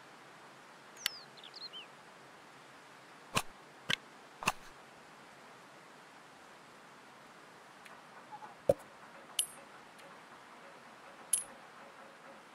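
Short, sharp menu clicks sound now and then.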